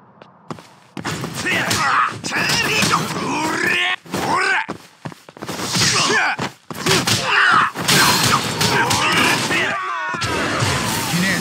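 Punches and blows land in a brawl.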